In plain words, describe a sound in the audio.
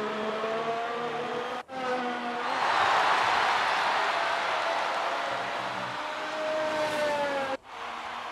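A racing car engine whines at high revs as the car speeds past.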